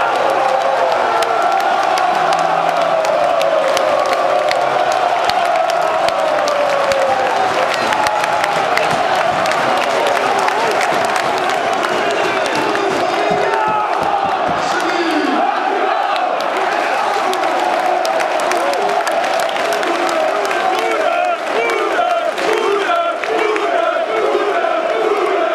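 A large stadium crowd sings and chants loudly in unison.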